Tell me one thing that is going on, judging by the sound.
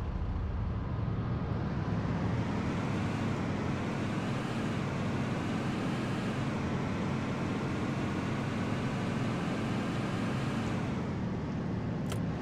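A truck engine hums and rises in pitch as it speeds up.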